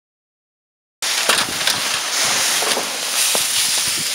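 A plastic tarp rustles and crinkles loudly.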